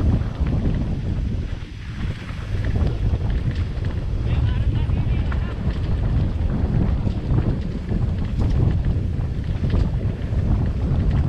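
Tyres crunch over dry leaves and dirt on a trail.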